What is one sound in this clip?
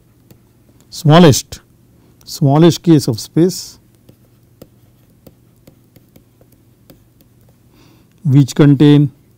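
A middle-aged man speaks slowly and calmly into a close microphone, with long pauses.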